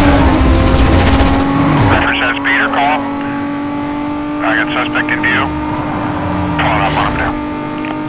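A race car engine roars at high speed.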